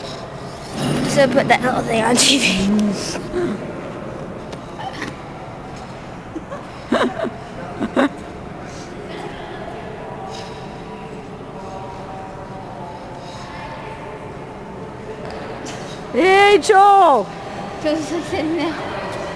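Skate blades scrape softly across ice in a large echoing hall.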